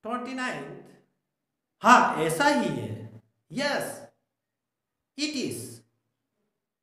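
A middle-aged man speaks calmly and clearly into a nearby microphone, in short phrases with pauses.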